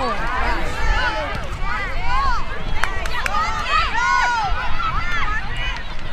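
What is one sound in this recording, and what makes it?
Children and adults shout and cheer outdoors.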